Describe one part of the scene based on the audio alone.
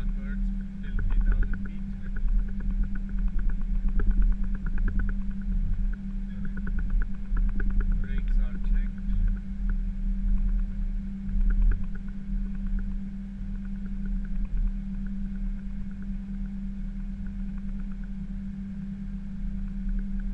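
A jet engine hums steadily inside the cockpit as the aircraft taxis.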